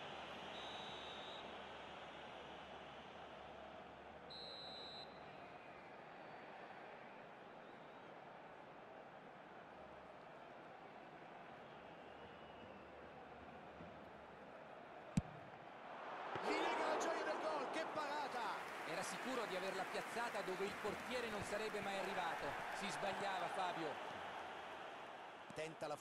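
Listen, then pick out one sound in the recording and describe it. A stadium crowd murmurs steadily, then swells into a loud roar.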